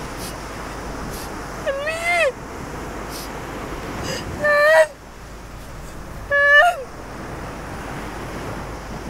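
Waves break on a shore.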